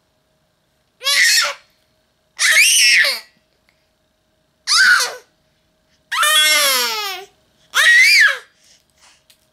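A baby squeals and coos loudly, close by, in short bursts.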